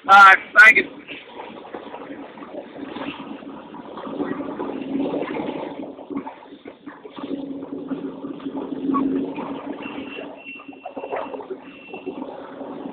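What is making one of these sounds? A truck engine rumbles steadily as the truck drives slowly.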